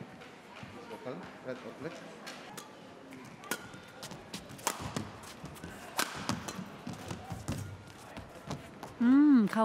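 Rackets strike a shuttlecock in a quick rally in a large echoing hall.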